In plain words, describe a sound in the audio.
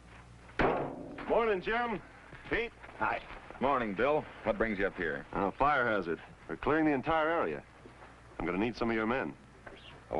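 A man talks cheerfully with other men.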